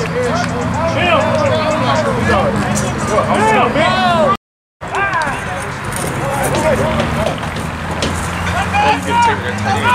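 Several young men and boys shout and cheer with excitement close by, outdoors.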